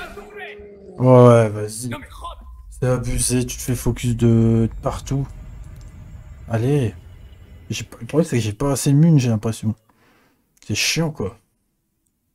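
A man talks with animation into a nearby microphone.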